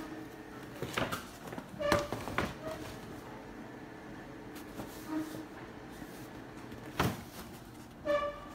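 A paper bag rustles and crinkles as hands handle it.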